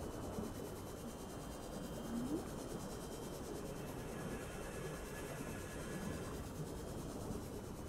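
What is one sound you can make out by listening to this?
A small submarine motor hums steadily underwater.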